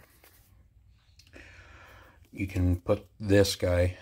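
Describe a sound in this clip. Plastic parts knock and click as a small device is handled up close.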